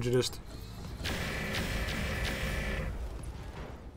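A laser weapon fires with a buzzing hum.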